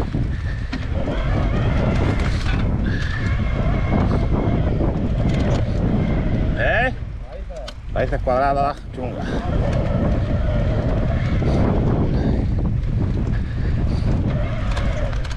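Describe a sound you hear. A bicycle frame rattles over bumps.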